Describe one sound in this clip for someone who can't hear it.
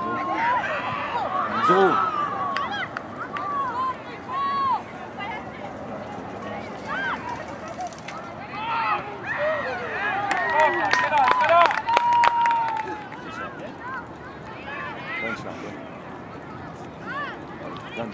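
Young players and spectators shout and call out across an open field outdoors.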